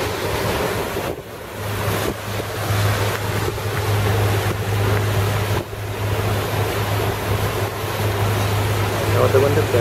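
Water splashes and rushes past a boat's hull.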